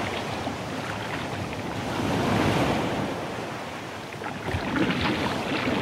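Paddle blades splash into the water.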